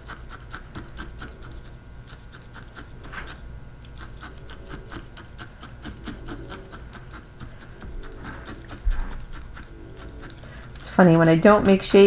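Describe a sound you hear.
A felting needle rapidly stabs into wool with soft clicks.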